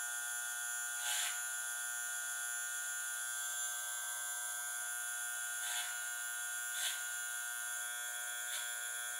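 Fingers brush and rustle through hair.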